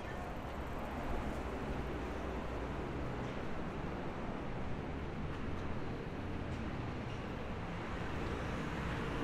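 City traffic rumbles steadily along a nearby road.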